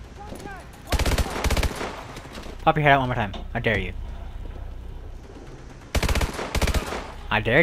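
A rifle fires in short, rapid bursts.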